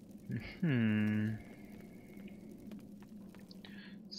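Torch flames crackle softly.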